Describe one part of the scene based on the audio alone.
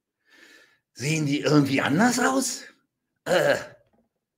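A middle-aged man speaks loudly and with animation, close to a microphone.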